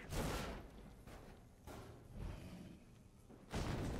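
Heavy footsteps thud along a hard floor.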